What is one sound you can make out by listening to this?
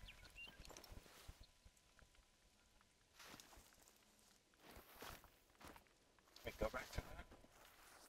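Branches and leaves rustle as someone pushes through brush.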